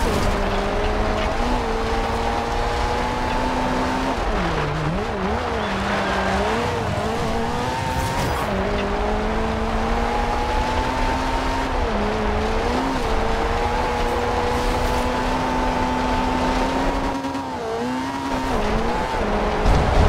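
Tyres crunch and skid on gravel.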